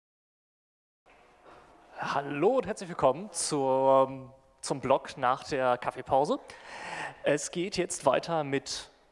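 A young man speaks calmly through a microphone in a large echoing room.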